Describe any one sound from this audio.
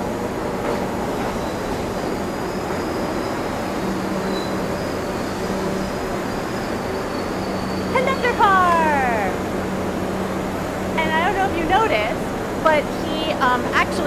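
A subway train rumbles and rattles past, loud and close.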